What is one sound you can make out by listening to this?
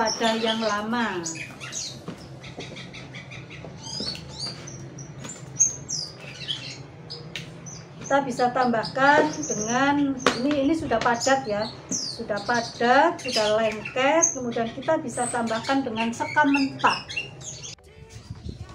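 An elderly woman talks calmly and clearly, close to a microphone.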